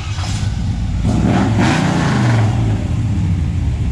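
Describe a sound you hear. A pickup truck engine revs up briefly and settles back down.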